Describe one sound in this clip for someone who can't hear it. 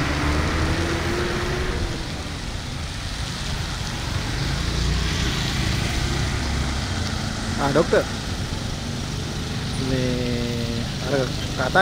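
An elephant tears and munches grass.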